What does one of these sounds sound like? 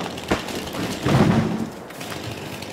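A tree crashes down to the ground.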